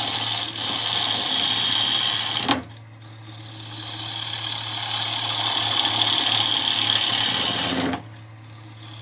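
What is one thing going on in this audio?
A gouge scrapes and hisses against spinning wood.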